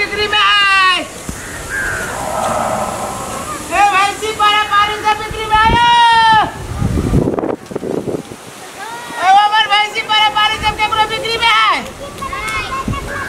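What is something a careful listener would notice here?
A man sings out loudly in long, drawn-out notes nearby.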